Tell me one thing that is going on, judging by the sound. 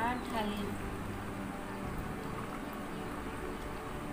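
Liquid pours and splashes steadily into a plastic container.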